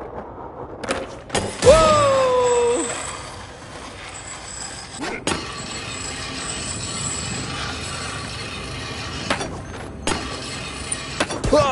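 Skateboard wheels roll and rumble over hard ground.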